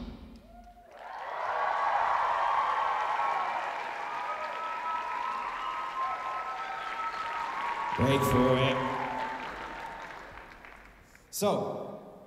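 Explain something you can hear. A large crowd cheers and murmurs in a big echoing hall.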